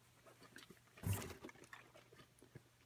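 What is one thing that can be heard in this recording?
A stiff plastic card rustles briefly as a hand brushes it.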